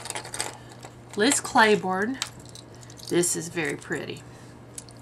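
A small metal clasp clicks softly.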